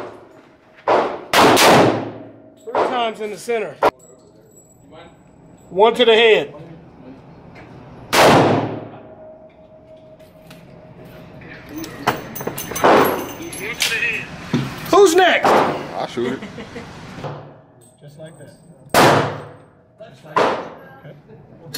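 A .357 Magnum revolver fires loud shots that echo in an indoor range.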